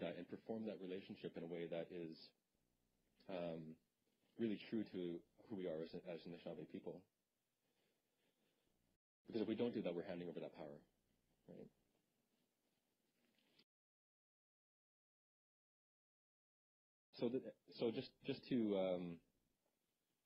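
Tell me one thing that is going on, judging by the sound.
A man speaks calmly into a microphone, lecturing with pauses.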